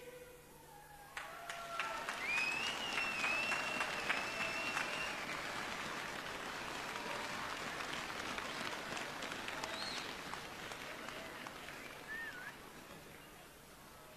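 A large crowd murmurs quietly outdoors.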